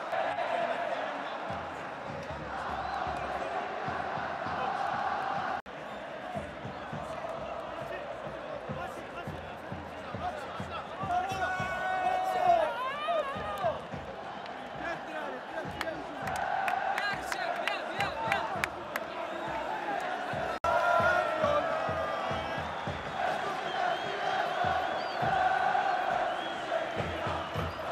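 A large crowd cheers and chants in an open stadium.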